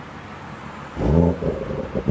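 A car engine starts and idles with a low rumble.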